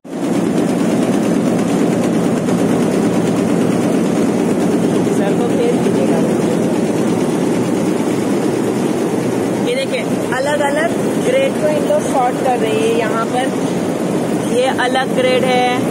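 Sorting machines rattle and hum loudly and steadily.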